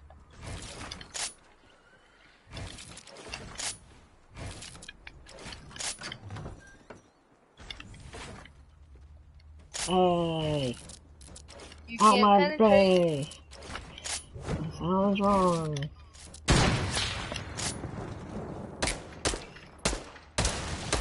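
Wooden building pieces clack and thud into place in quick bursts.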